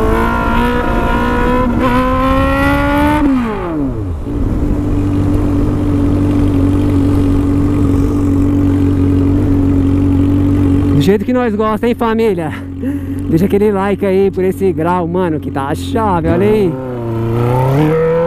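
A motorcycle engine roars and revs up and down while riding.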